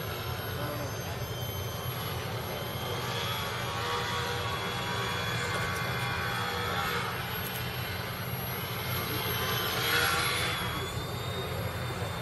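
A small model plane's electric motor whines, rising and falling in pitch as it flies past.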